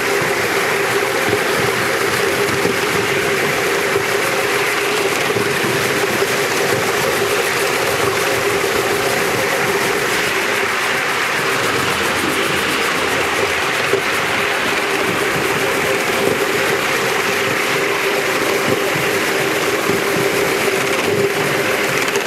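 A small steam locomotive chuffs steadily as it runs along a track.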